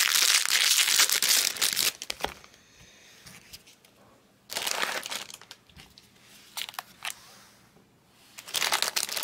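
Plastic wrappers crinkle and rustle close by.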